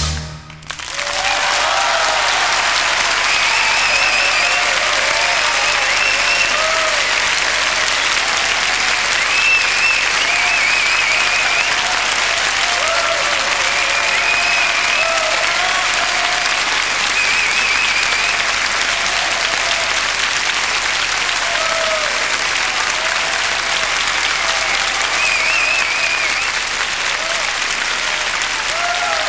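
A large audience applauds loudly and steadily in a big hall.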